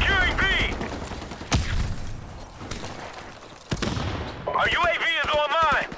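Footsteps thud quickly as a soldier runs.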